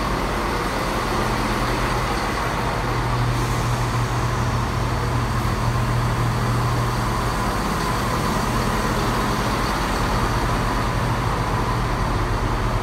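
Train wheels roll and clatter over the rails.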